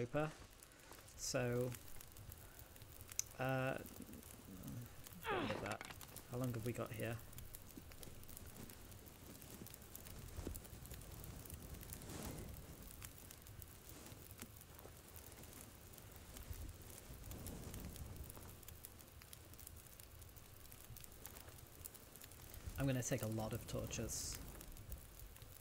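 A fire crackles in a metal barrel.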